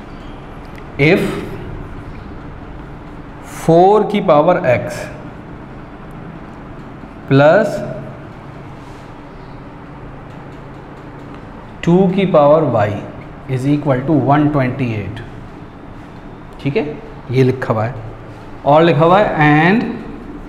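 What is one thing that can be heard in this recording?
A man speaks calmly and clearly into a nearby microphone, in short phrases with pauses.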